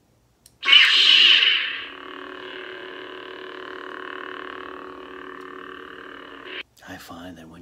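A toy light sword ignites with a loud whoosh and then hums steadily.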